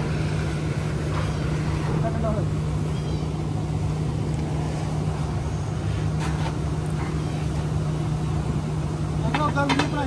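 A bull float slides over wet concrete.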